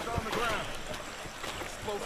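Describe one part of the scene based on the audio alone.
Soldiers wade and splash through water.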